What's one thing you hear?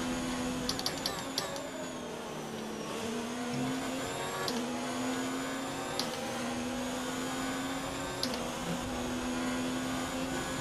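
A racing car engine roars at high revs, its pitch dropping and rising as the car slows and speeds up.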